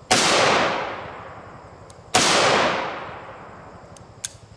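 A rifle fires two loud shots that echo and fade outdoors.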